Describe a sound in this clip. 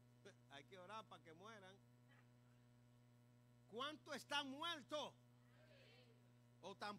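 A man preaches with animation through a microphone and loudspeakers.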